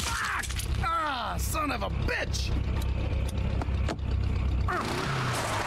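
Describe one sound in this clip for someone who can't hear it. A man groans and curses in pain.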